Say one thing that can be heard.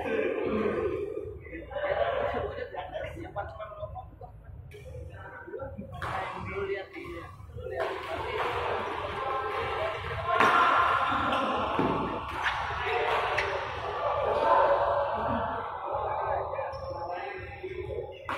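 Many voices chatter and call out around a large echoing hall.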